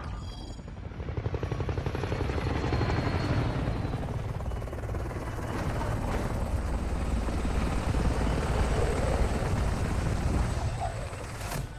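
A military helicopter's rotor thumps overhead.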